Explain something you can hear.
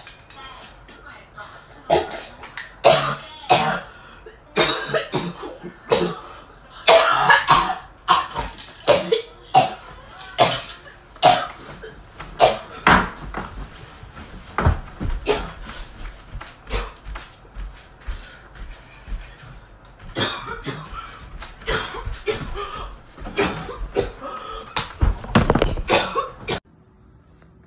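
A young woman gasps and exclaims loudly nearby.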